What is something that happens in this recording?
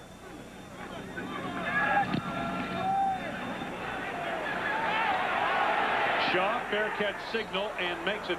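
A large crowd in a stadium cheers and roars, growing louder.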